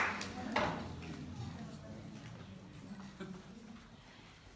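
A piano plays softly.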